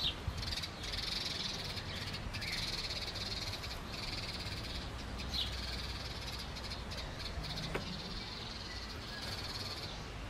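A cat scrambles and rustles through hedge branches.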